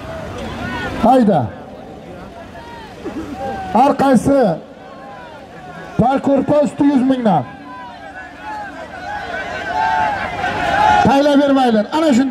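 Men in a crowd shout loudly in bursts.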